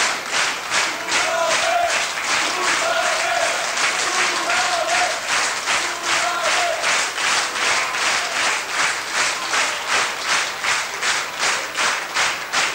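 A big band plays a lively swing tune in a hall.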